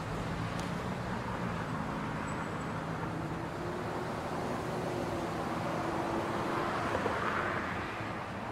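City traffic hums steadily with cars driving along a street below.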